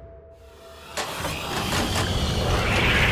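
A spaceship engine hums loudly and rises.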